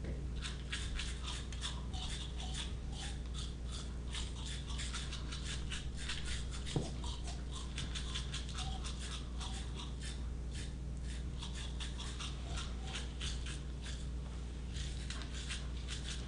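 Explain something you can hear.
A second man makes rhythmic mouth sounds through a microphone.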